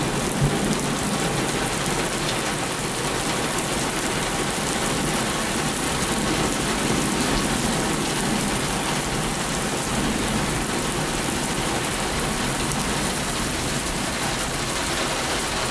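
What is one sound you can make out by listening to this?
Strong wind gusts roar and rustle through tree leaves.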